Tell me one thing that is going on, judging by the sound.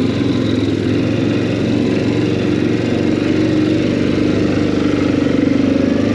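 A quad bike engine hums steadily up close.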